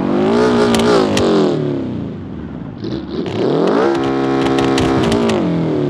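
An engine roars at high revs, dropping away and then revving up again.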